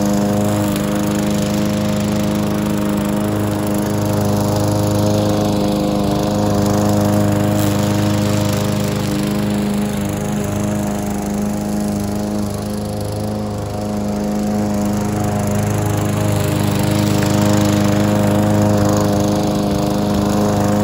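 A petrol lawn mower engine drones steadily close by, rising and falling as the mower moves back and forth.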